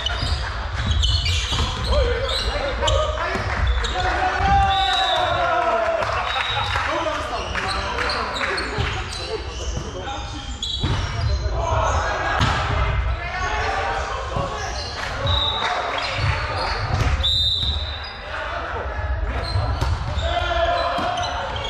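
Sneakers squeak sharply on the hard floor.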